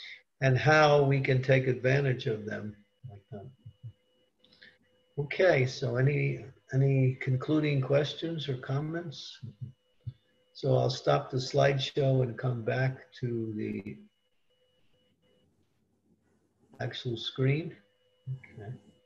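An elderly man speaks calmly over an online call, reading out slowly.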